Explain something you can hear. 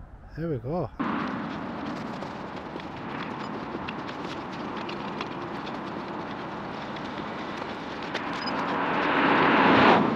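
Wind blows and buffets outdoors.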